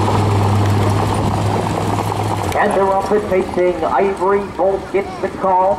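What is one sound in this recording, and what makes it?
Horses' hooves thud on a dirt track.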